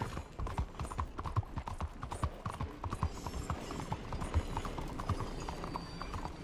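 Horse hooves clop quickly on cobblestones.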